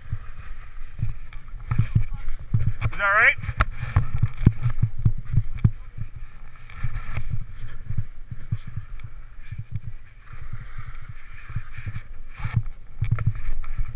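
Downhill skis hiss and swish through deep powder snow.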